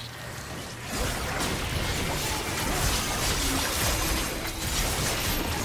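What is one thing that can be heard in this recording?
Magic blasts burst and boom during a skirmish.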